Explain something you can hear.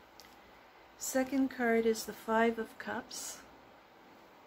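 A woman speaks close up, calmly and with expression.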